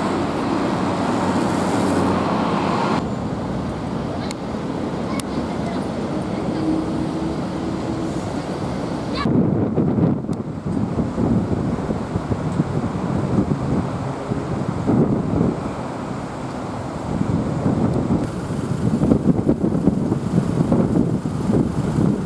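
Road traffic rumbles past steadily outdoors.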